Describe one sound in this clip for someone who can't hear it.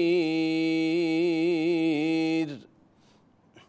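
A man chants in a long, melodic voice through a microphone, echoing in a large hall.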